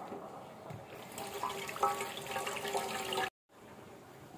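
Tap water splashes onto vegetables in a colander.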